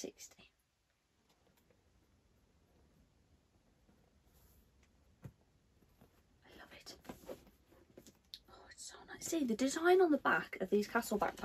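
A bag's fabric and straps rustle as it is handled.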